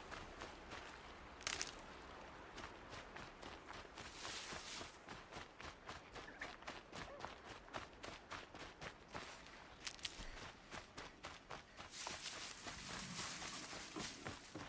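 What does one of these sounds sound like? Footsteps rustle quickly through grass and brush.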